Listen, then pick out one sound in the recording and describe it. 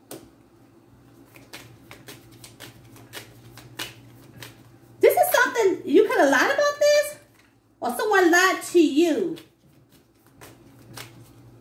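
Playing cards riffle and snap as they are shuffled close by.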